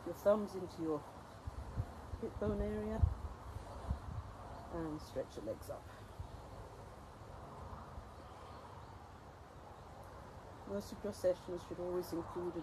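An elderly woman speaks calmly, close by, outdoors.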